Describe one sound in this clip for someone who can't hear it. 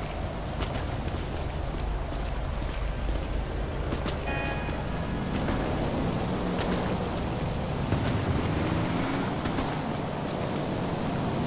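Footsteps splash quickly on wet ground.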